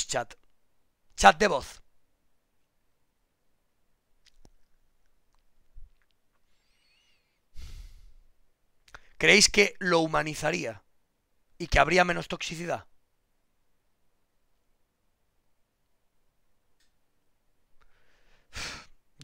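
A man speaks calmly into a microphone, close by, in short bursts with pauses.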